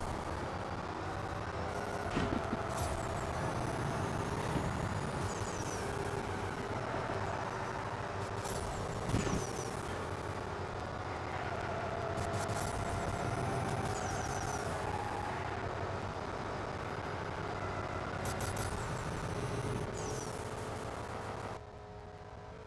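A racing car engine roars at high revs.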